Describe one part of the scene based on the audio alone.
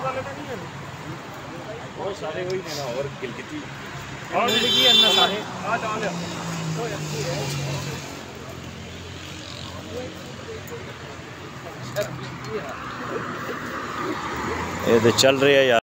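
A middle-aged man speaks calmly close by, outdoors.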